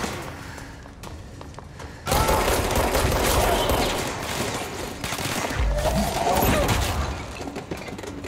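Debris crashes and scatters across a hard floor.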